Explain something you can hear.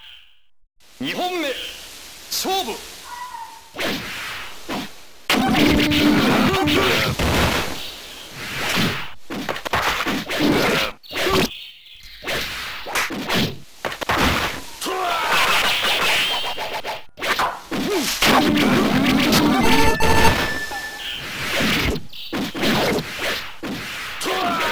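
Swords clash and slash with sharp hits.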